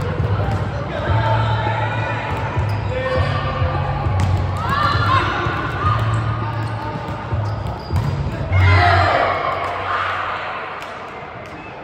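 Young women call out and shout in a large echoing hall.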